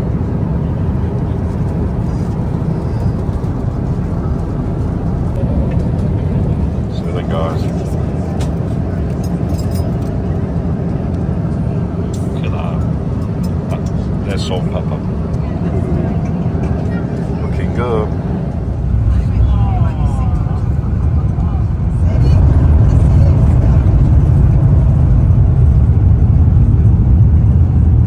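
A jet engine roars steadily in an aircraft cabin.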